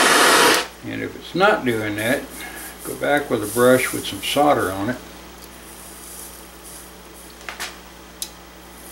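A gas torch flame hisses steadily.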